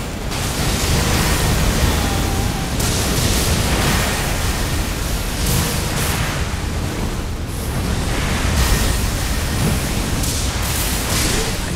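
Lightning crackles and booms in bursts.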